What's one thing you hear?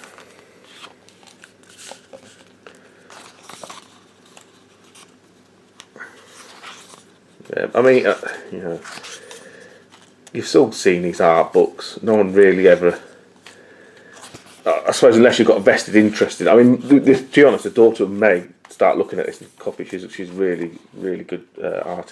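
Stiff book pages rustle and flap as they are turned.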